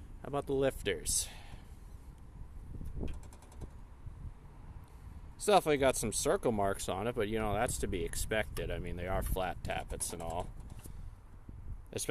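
Small metal engine parts click and clink as they are handled.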